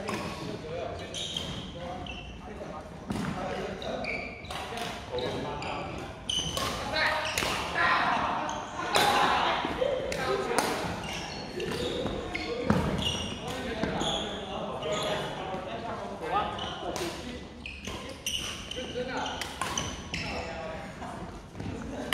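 Men call out and talk, echoing in a large hall.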